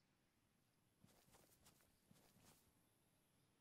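Several rifle shots ring out in quick succession.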